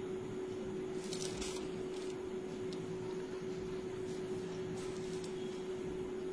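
Paper rustles as pages are handled.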